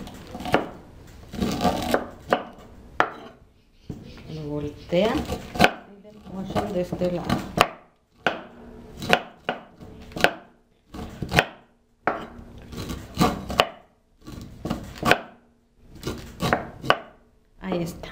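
A knife scrapes kernels off a corn cob.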